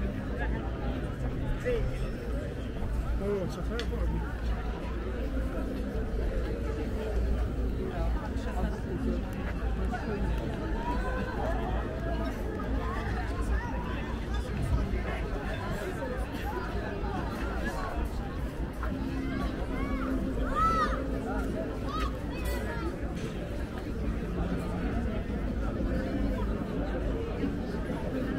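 A crowd of people chatter and call out nearby, outdoors.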